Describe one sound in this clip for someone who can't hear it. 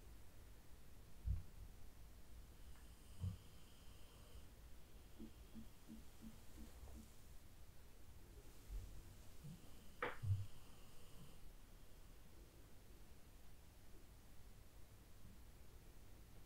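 A soft brush strokes gently across skin.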